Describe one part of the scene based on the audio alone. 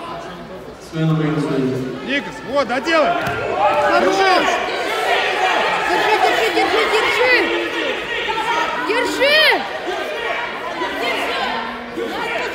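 Spectators and coaches shout encouragement during a wrestling bout in an echoing hall.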